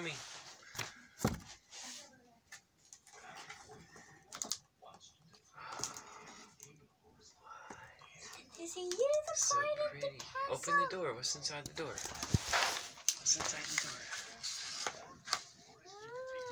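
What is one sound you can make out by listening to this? Paper rustles and crinkles as a young girl handles gifts.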